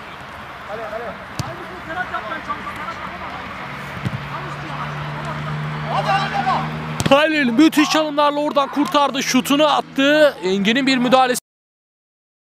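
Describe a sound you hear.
Young men shout and call to each other.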